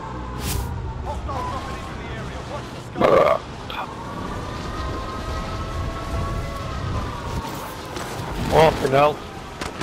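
Wind rushes loudly during a fall through the air.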